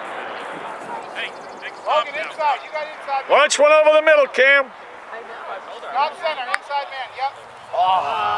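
Men shout and call out across an open outdoor field.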